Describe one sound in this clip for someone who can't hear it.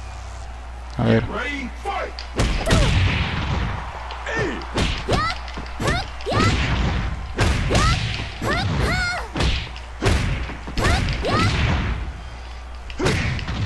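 Punches and kicks land with sharp smacking thuds.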